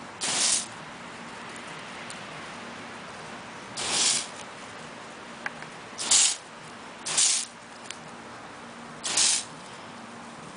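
A garden hose sprays water in short hissing bursts.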